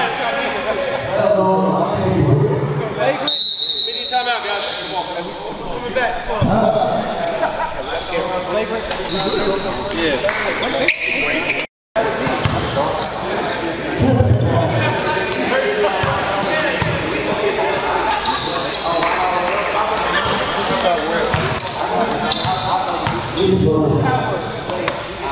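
People chatter in a large echoing gym.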